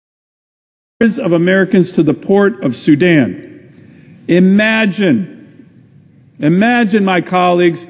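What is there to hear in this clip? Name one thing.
A middle-aged man speaks formally into a microphone in a large echoing hall.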